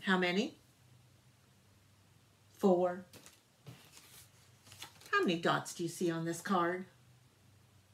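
A middle-aged woman speaks clearly and brightly close by, in short bursts.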